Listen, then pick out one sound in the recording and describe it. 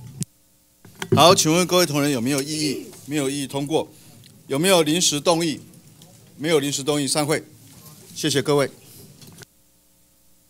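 A man reads out in a firm voice through a microphone.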